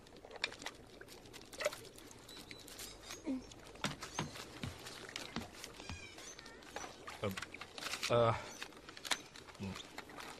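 A man speaks in a puzzled tone, close by.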